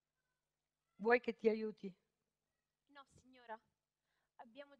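A young woman speaks into a microphone in a large hall.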